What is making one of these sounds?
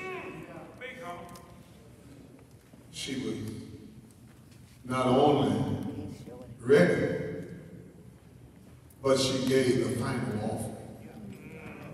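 An elderly man preaches into a microphone in bursts, his voice echoing in a large hall.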